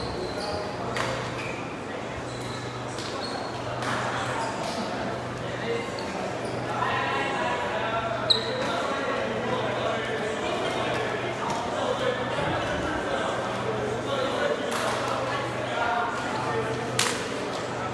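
Shuttlecocks are struck with sharp smacks in a large echoing hall.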